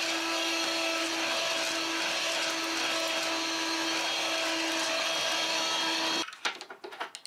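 A handheld cleaner hums steadily.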